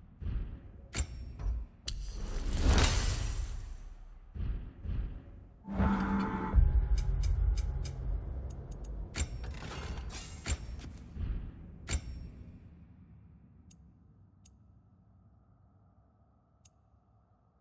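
Game menu clicks and swooshes sound as options are selected.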